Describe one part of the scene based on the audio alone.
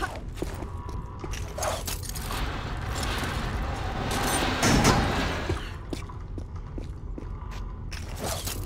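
Footsteps run quickly across a hard stone floor.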